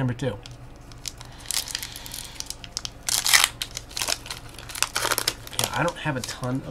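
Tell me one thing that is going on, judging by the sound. A foil card pack crinkles and tears as it is opened.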